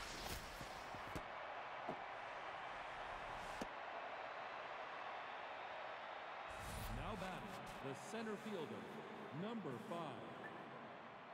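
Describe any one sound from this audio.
A stadium crowd murmurs and cheers steadily.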